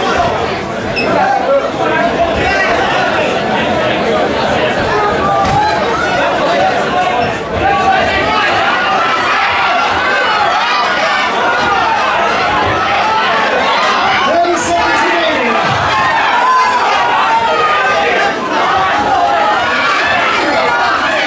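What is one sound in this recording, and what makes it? A crowd of men and women shouts and cheers throughout in a large echoing hall.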